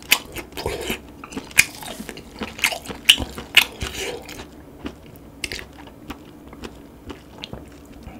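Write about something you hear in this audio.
A man chews and slurps wet, squishy food close to a microphone.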